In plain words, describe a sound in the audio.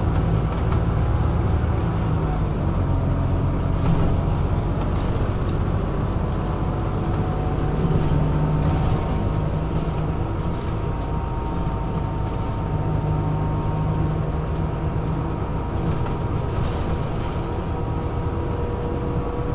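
A vehicle's engine rumbles steadily while riding along a road.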